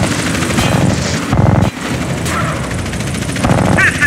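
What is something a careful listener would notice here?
A car engine hums as a car drives.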